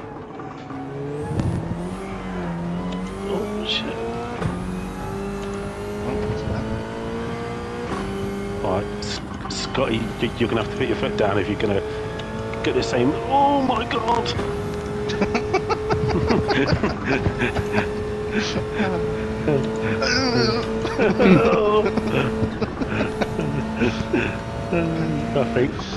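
A racing car engine roars steadily, its pitch rising and falling through the gears.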